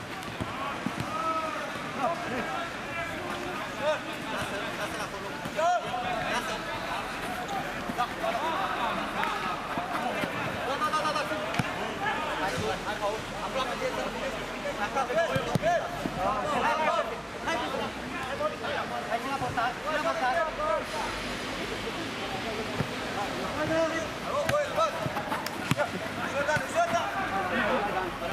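Men shout to each other on an outdoor pitch.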